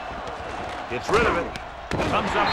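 Football players collide in a thudding tackle.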